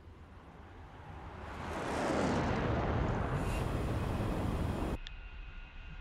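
Jet aircraft roar past overhead and fade.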